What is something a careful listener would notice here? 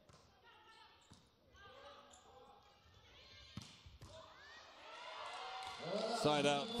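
Young women players shout and call out in a large echoing hall.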